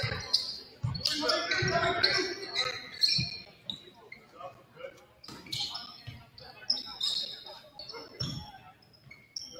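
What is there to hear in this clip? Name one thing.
A basketball thumps as it is dribbled on the floor.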